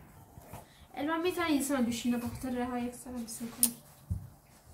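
A girl speaks animatedly nearby.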